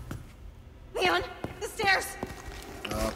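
A young woman shouts urgently.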